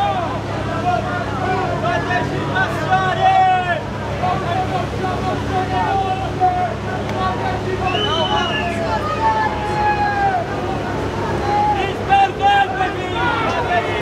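A crowd of men and women chants and shouts loudly outdoors.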